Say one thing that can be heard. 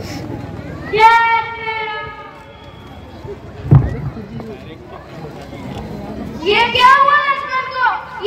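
A young performer cries out loudly through a loudspeaker, echoing outdoors.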